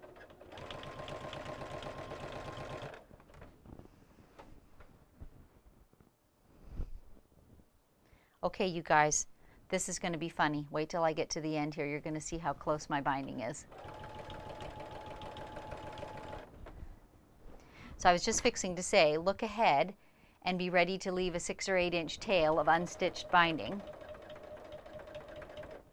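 A sewing machine runs with a steady whirring hum in bursts.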